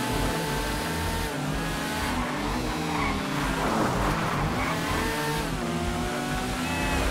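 A motorcycle engine revs and roars steadily at speed.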